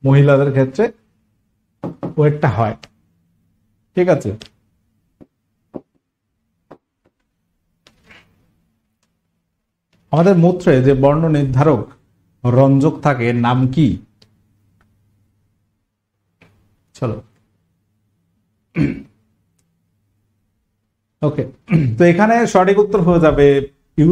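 A man speaks with animation, close to a microphone, in short bursts with pauses.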